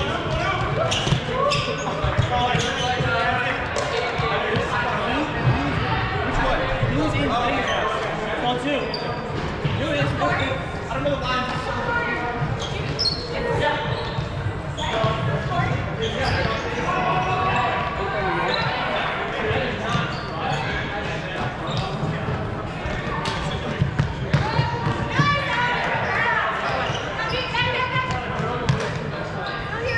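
Several young men and women shout and call out to each other across a large echoing gym.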